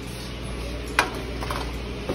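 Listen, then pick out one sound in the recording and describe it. An oven door clanks open.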